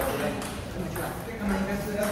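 A table tennis ball clicks off paddles.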